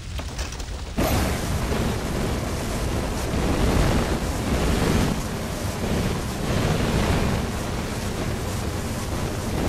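A flamethrower roars, spraying fire in loud rushing bursts.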